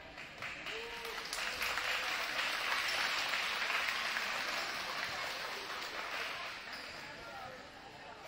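A crowd in a large echoing gym cheers loudly, then settles.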